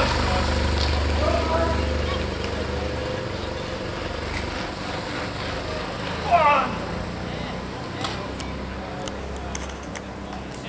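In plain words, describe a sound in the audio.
Spectators chatter and cheer outdoors.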